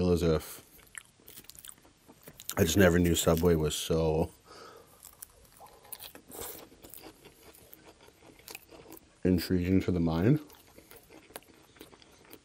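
A fork scrapes and clinks against a glass bowl.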